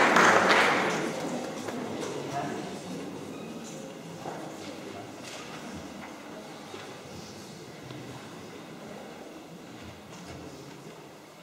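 A crowd of children murmurs softly.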